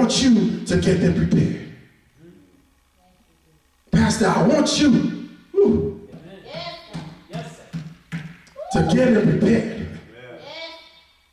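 A man preaches with passion into a microphone in an echoing hall, his voice rising and falling.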